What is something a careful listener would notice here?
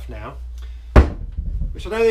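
A wooden stool knocks on the floor.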